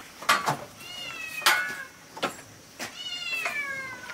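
Wooden boards knock together as a man handles them.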